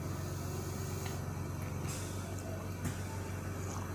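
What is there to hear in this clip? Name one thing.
A woman sips a drink from a mug.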